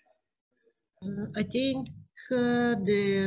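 A younger woman speaks with animation over an online call.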